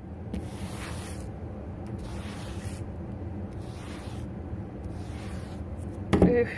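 A sponge scrubs back and forth across a surface.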